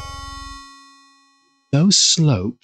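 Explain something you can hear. A video game plays a ringing chime that fades away.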